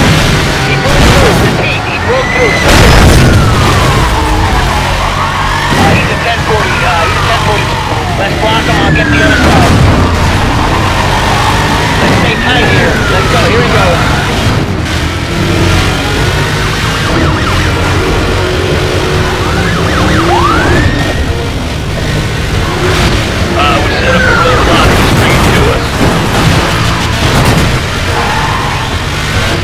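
A car engine roars and revs loudly throughout.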